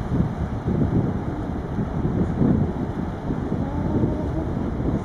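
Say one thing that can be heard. Waves churn and splash on the sea.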